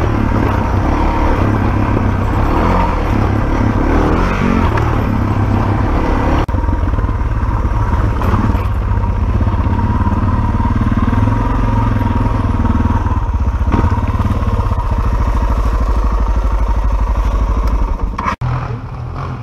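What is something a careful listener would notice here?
A motorcycle engine drones steadily up close.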